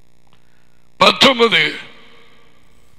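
A man speaks a short phrase loudly into a close headset microphone.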